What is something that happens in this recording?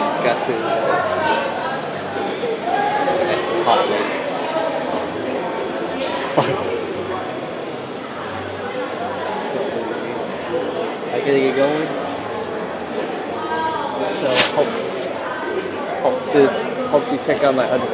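Many people chatter in a large, echoing hall.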